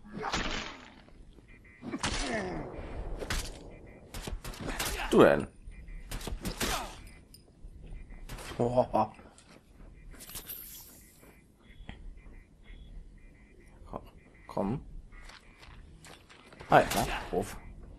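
Heavy blows thud against armour.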